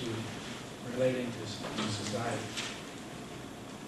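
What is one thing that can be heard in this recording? An older man speaks calmly, a short way off.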